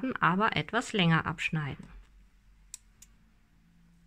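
Scissors snip through yarn with a short click.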